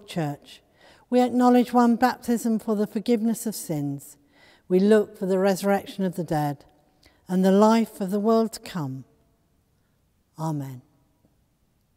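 An elderly woman reads aloud in a slow, chanting voice in a large, echoing room.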